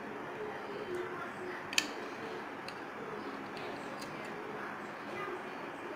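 A screwdriver turns a metal screw with small clicks.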